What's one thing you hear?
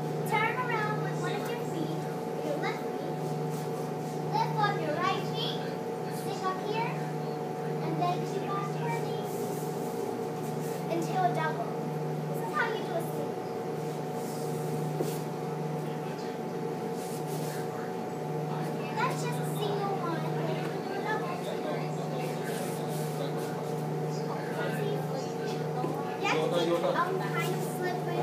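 Boots stamp and scuff on a hard floor.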